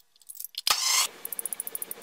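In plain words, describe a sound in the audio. A crimping tool clicks shut on a pipe.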